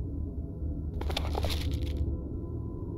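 Pages of a book flip open with a soft rustle.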